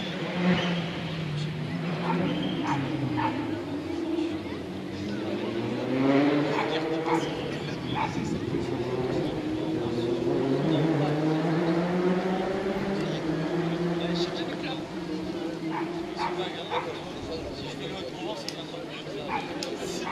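A crowd of spectators chatters at a distance outdoors.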